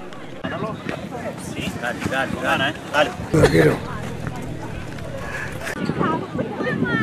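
Children talk and shout excitedly nearby, outdoors.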